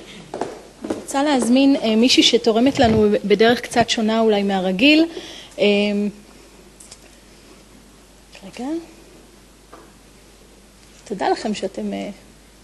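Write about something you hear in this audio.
A young woman speaks into a microphone in a calm, friendly voice, with pauses.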